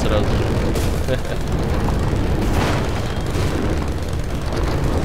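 A motorcycle engine rumbles loudly and steadily.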